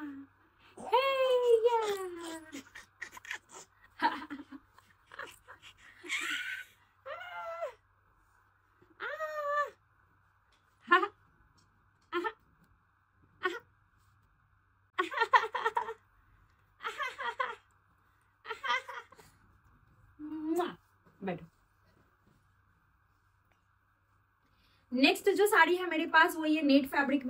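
A young woman talks and laughs cheerfully close to a microphone.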